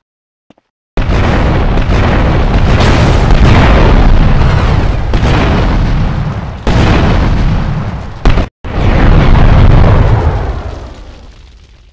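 A loud explosion booms and roars, then slowly fades.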